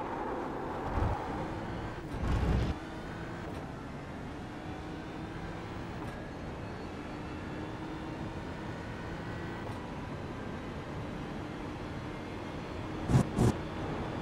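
Tyres thump over kerbs.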